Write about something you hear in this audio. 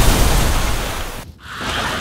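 Rain falls steadily.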